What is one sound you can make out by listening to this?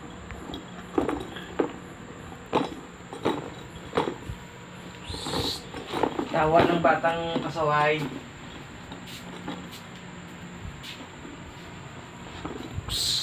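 A plastic toy rattle clicks and knocks.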